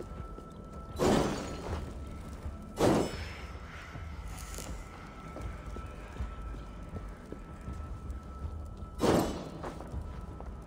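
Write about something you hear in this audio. Flames burst up with a loud whoosh.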